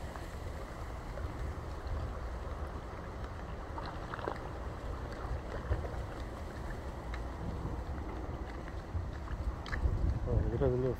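Shallow water laps gently against a seawall.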